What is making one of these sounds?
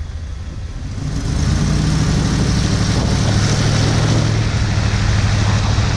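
Tyres hiss steadily on a wet road.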